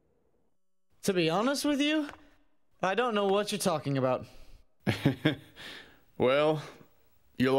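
A young man answers with animation.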